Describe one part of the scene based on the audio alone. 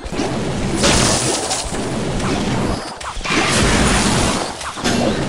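Video game battle sound effects clash and thud.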